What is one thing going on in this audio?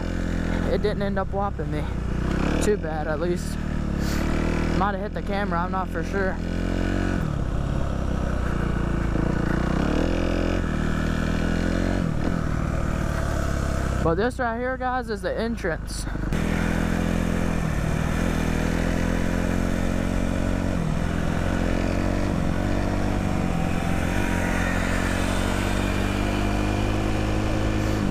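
A motorbike engine drones close by, revving up and down.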